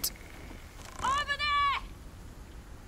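A young woman shouts.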